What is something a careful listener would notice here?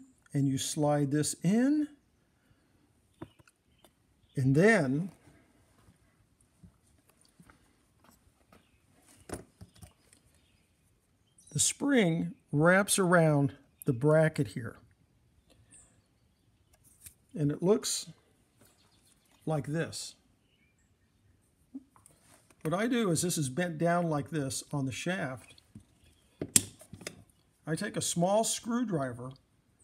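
Small metal parts click and tap against each other.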